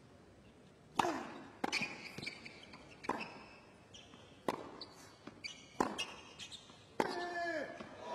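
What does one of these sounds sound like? Tennis balls are struck hard with rackets in a rally.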